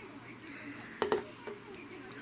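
A small metal cup clinks down on a wooden table.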